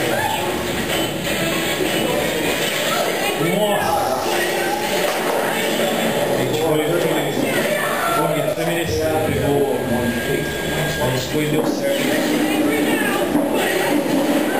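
Sword clashes and impact blasts crack from a television.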